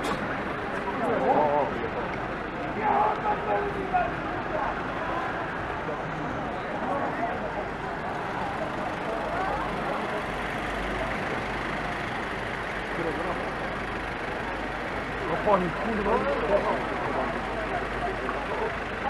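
People talk nearby outdoors.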